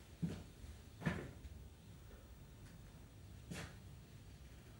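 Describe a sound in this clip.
A man chuckles softly nearby in short bursts.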